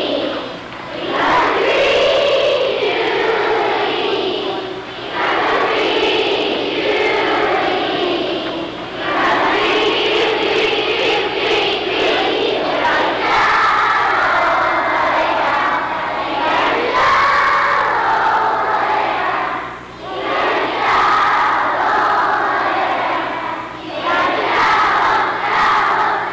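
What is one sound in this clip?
A group of children sings a lively song in a large echoing hall.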